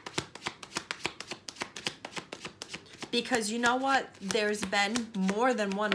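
Cards riffle and flick quickly as they are shuffled.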